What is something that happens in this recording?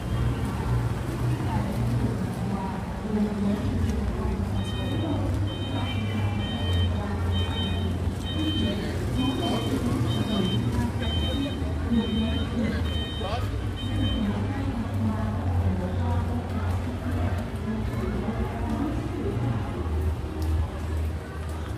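Traffic rumbles steadily along a street.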